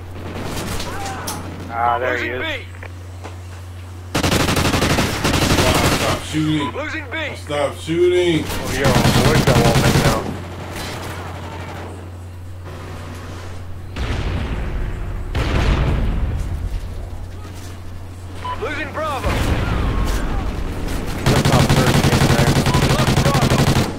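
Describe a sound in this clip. A man talks with animation into a microphone close by.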